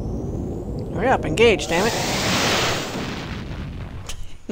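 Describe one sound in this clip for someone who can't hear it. A spaceship roars past with a loud whoosh.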